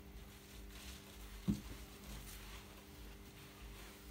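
A cloth wipes across a countertop.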